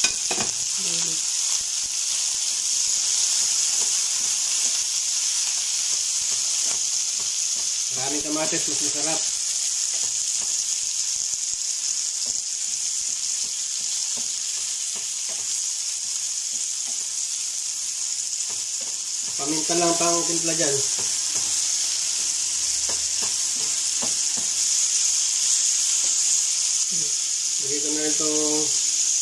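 Food sizzles steadily in a frying pan.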